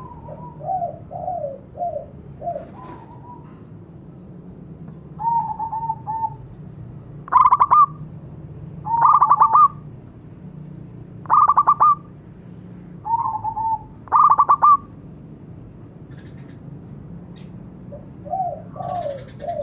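A zebra dove calls with trilling coos.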